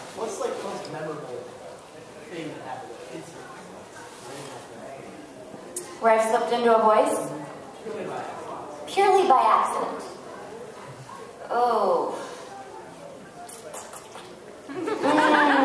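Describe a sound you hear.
A young woman speaks calmly into a microphone, heard through a loudspeaker in a large room.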